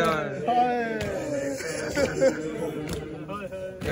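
Men beat their chests with dull thumps.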